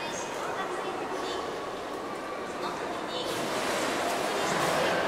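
Water pours and splashes steadily into a pool.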